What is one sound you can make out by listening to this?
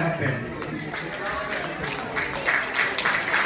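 An audience claps.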